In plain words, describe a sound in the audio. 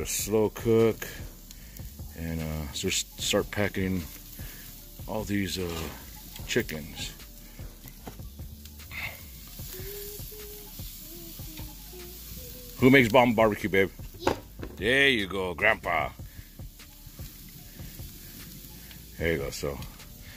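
Meat sizzles on a grill.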